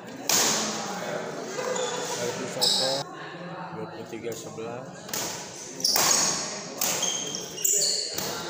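Badminton rackets strike a shuttlecock back and forth.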